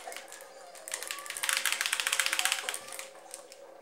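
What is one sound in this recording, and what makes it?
A swarm of rats squeaks and chitters.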